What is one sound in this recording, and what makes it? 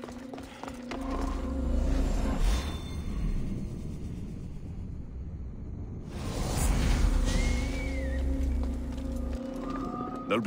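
A deep magical whoosh swells and rumbles, then fades.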